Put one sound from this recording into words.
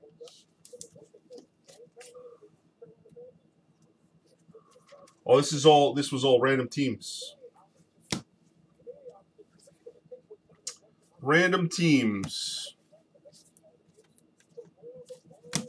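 Plastic card sleeves rustle and crinkle.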